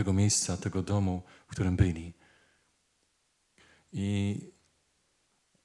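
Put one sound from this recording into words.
A middle-aged man chants solemnly into a microphone.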